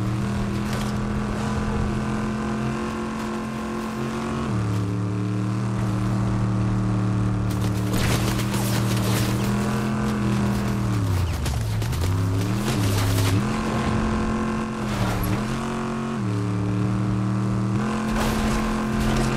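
A car engine hums steadily, its pitch dropping and rising as it slows and speeds up.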